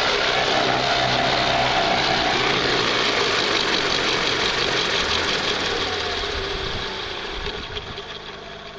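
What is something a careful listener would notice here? A small electric motor whirs loudly and slowly winds down.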